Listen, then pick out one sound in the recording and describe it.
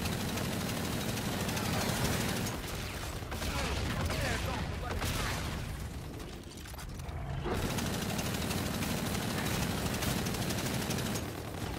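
Twin guns fire rapid bursts in a video game.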